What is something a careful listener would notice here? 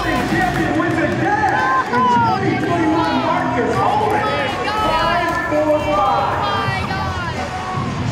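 A crowd of children cheers and shouts excitedly in a large open stadium.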